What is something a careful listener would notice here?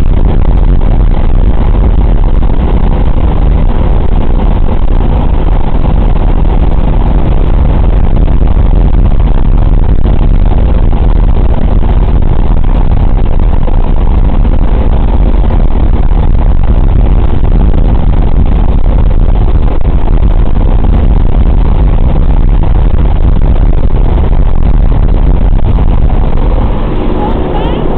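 Radial piston engines of a four-engine bomber drone in cruise, heard from inside the fuselage.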